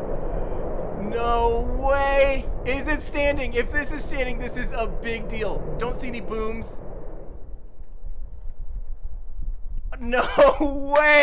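A young man speaks excitedly into a microphone, exclaiming and cheering.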